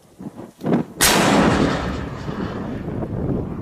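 A mortar fires with a sharp, loud blast that echoes away.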